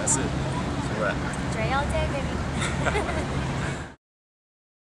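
A man laughs nearby outdoors.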